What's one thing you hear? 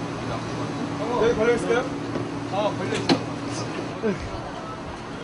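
Several young men talk and call out nearby outdoors.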